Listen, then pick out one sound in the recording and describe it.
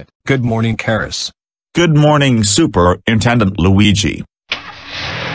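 A synthetic computer voice speaks calmly.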